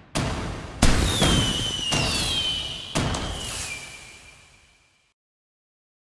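A firework rocket whistles as it climbs.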